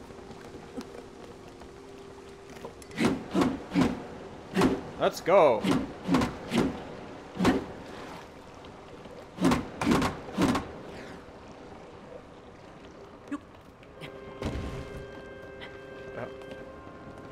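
Waves lap against a floating raft.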